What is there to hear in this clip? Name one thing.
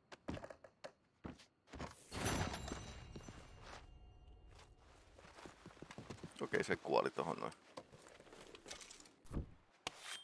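Boots thud on wooden planks.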